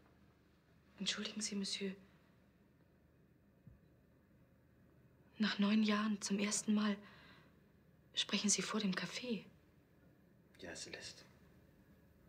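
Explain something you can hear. A young woman speaks close by, in a tense voice, with pauses.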